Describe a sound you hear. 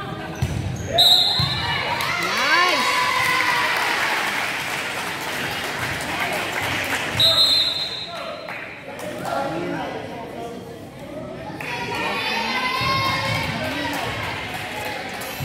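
A crowd of spectators cheers and shouts.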